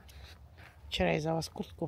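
A hen clucks loudly nearby.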